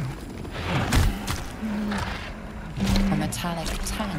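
A large monster growls and roars.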